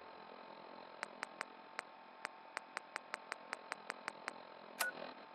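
A dial clicks quickly as it is turned.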